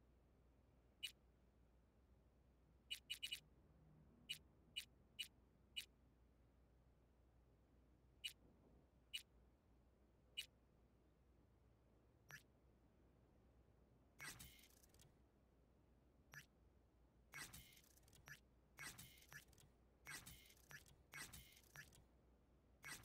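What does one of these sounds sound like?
Short soft interface clicks tick as menu selections change.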